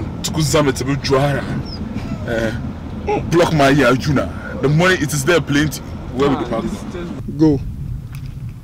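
A man talks cheerfully nearby.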